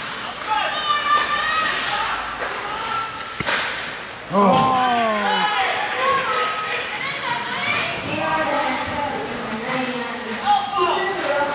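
Men shout and call out across an echoing ice rink.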